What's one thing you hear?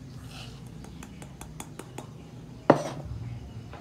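Coffee grounds rattle as they are tipped from a metal cup into a paper filter.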